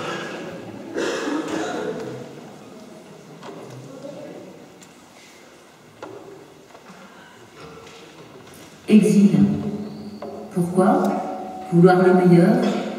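A children's choir sings together in a large, echoing hall.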